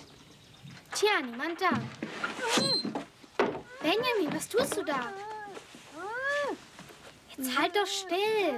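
A boy cries out and groans loudly in pain, close by.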